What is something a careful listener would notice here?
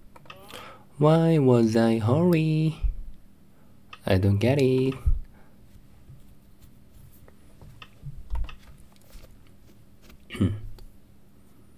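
A young man talks calmly into a microphone, in short bursts.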